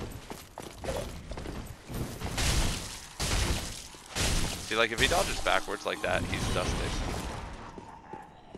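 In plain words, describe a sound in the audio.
Heavy blows land with loud bursts of impact.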